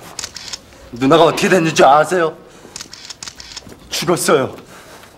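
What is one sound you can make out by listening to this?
A young man speaks sharply up close.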